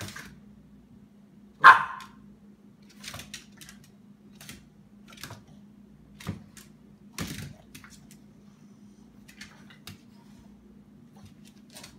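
Two Boston terriers growl and snarl while play-fighting.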